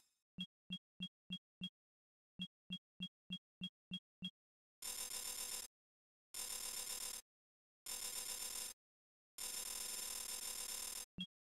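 Short electronic menu beeps sound in quick succession.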